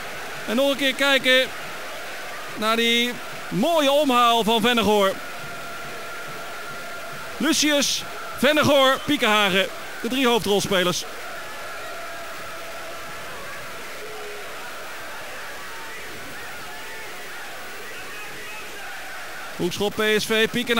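A stadium crowd murmurs in the distance.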